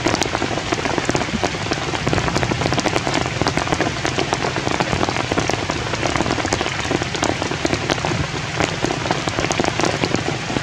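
Rain patters steadily on rocks and leaves outdoors.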